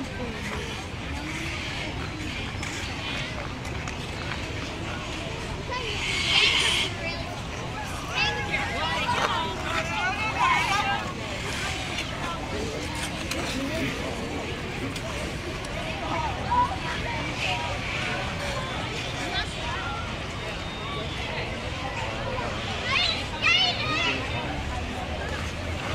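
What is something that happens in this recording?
Skate blades scrape and hiss across the ice.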